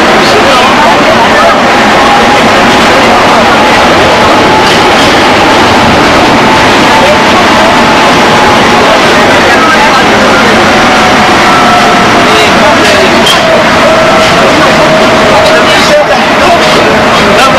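Train wheels screech on the rails with a high drawn-out squeal.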